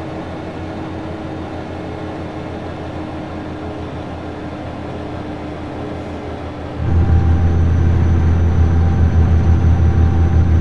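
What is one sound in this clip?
A truck engine drones steadily, growing louder partway through.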